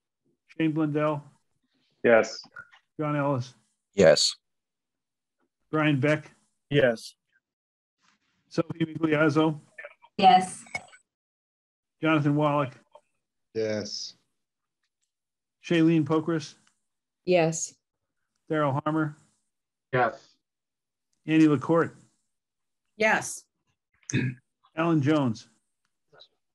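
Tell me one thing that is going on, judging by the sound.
An elderly man speaks calmly over an online call, in short bursts with pauses.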